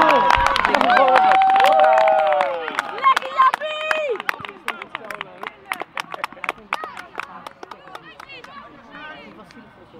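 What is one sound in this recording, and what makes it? Young male players shout and cheer outdoors in celebration.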